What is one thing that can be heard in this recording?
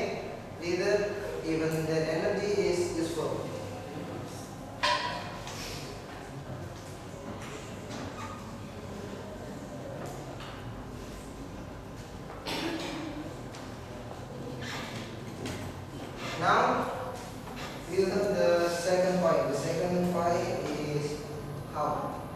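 A young man speaks calmly to a class.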